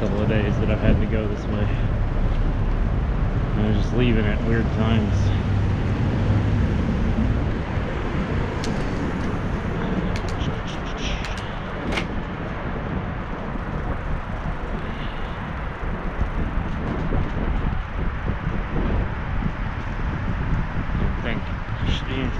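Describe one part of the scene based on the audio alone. Wind rumbles outdoors on a city street.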